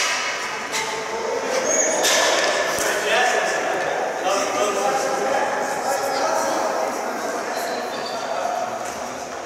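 Young men call out to each other in a large echoing arena.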